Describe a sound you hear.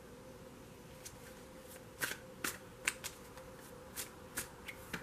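Cards flick and tap together as a deck is shuffled by hand.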